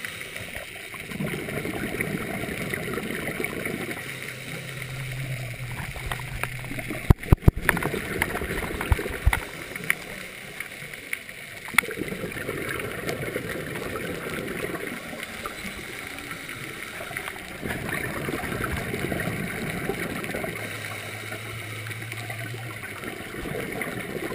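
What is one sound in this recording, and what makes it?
A scuba diver breathes out through a regulator in loud, rumbling bursts of bubbles underwater.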